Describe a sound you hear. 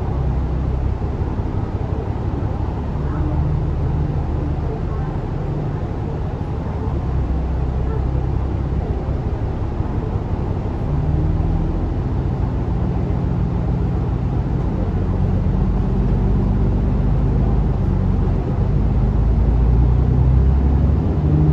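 A bus engine rumbles and hums steadily from inside the bus.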